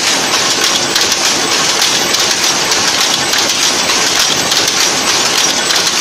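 Power looms clatter loudly and rapidly nearby.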